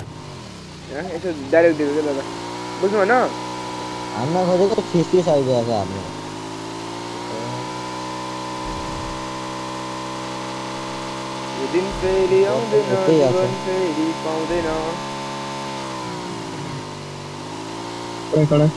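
A motorbike engine drones steadily, its pitch rising and dipping as it speeds up and slows.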